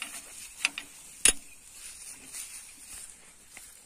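Metal parts of a trailer hitch clank and knock.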